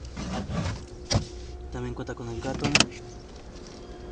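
Objects rustle and thump as a hand moves them about.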